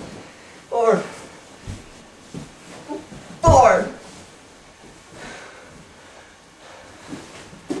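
A person thrashes and thumps on a soft mattress.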